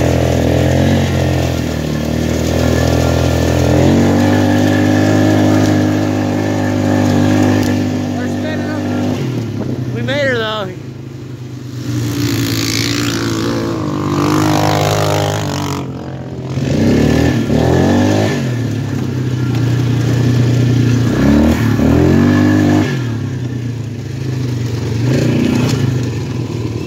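An ATV engine runs and revs as it drives over rough ground.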